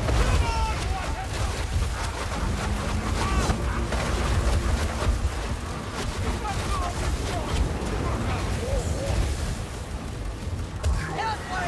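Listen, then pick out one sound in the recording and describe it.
A low, stormy wind rumbles steadily outdoors.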